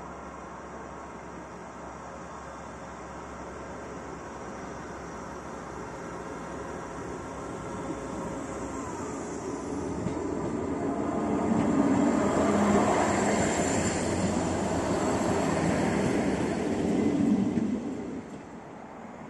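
A train approaches, rumbling louder, and rolls past close by on the rails.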